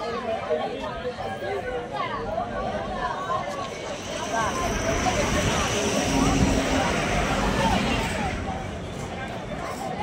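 A crowd of young men and women chatters outdoors.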